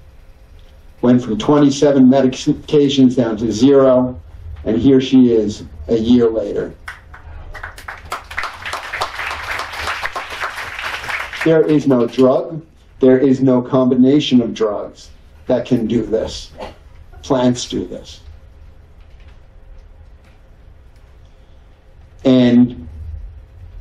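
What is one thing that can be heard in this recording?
A middle-aged man speaks calmly through a microphone in a large hall.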